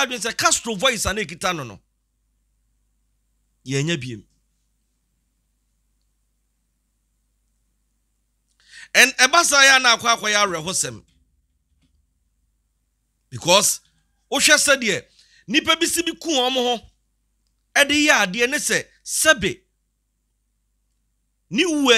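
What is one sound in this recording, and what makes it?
A man speaks with animation into a close microphone, pausing now and then.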